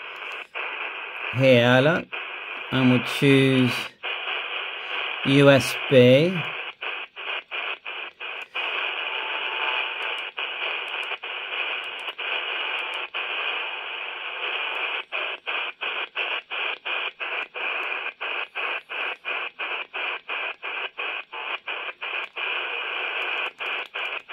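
Static hisses steadily from a handheld radio's small loudspeaker, cutting out briefly again and again as the radio tunes.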